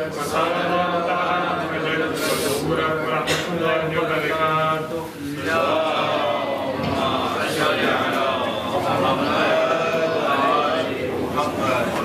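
A man chants a prayer aloud into a microphone, echoing in a large room.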